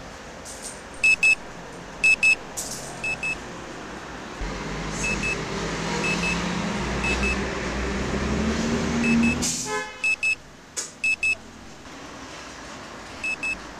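An alarm clock beeps in short, repeated double bursts.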